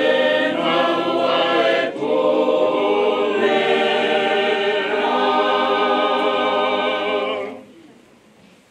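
A large group of people sings together loudly in a hall.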